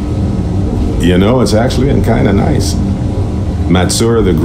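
A man speaks calmly and warmly, close to the microphone.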